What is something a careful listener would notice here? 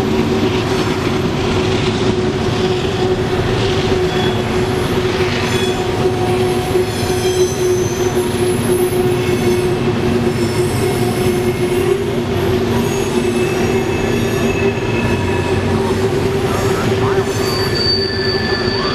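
Loaded freight cars rumble and clatter steadily along the rails.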